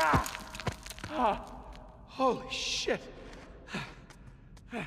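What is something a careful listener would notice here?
A young man groans and curses breathlessly.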